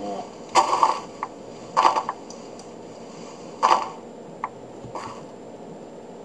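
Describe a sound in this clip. Dirt crunches in short, gritty bursts as blocks are dug out.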